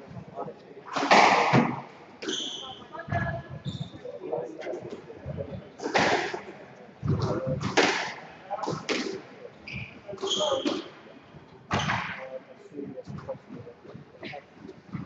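Children talk and call out nearby in an echoing hall.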